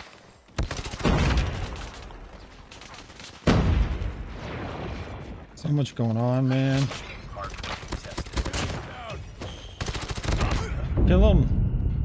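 Rapid gunfire rattles from a game.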